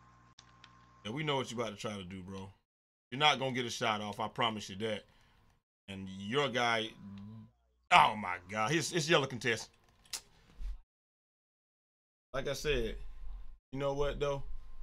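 A young man talks with animation into a headset microphone, in short bursts.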